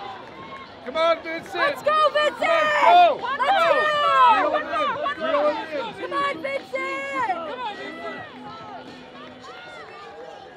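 A crowd of spectators cheers and shouts excitedly.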